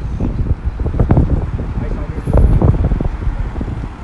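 A car drives past nearby.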